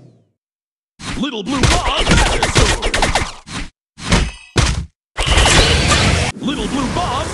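Game magic zaps and crackles as a spell hits enemies.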